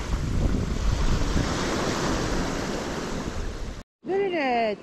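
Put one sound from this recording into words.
Waves wash loudly over a pebble shore.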